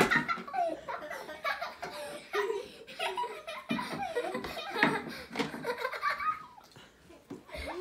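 Young children talk and squeal excitedly close by.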